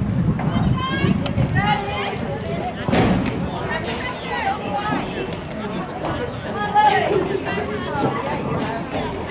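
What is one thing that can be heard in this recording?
Young women shout and call out to each other outdoors across an open field.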